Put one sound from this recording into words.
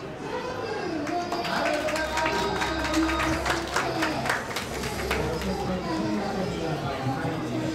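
A crowd of young people claps.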